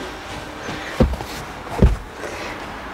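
A cushion thumps down onto wooden slats.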